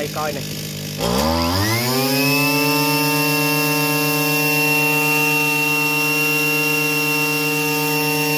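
A small petrol engine revs up sharply and then runs at a steady high whine.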